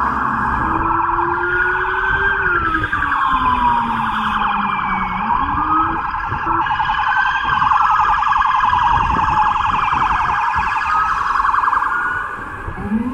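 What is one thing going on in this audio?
A police siren wails loudly close by, rising and falling.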